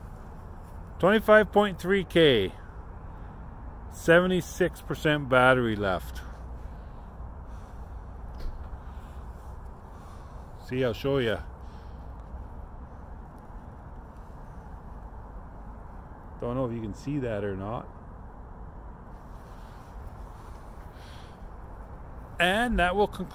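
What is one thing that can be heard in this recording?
A middle-aged man talks calmly in short bursts, close to the microphone.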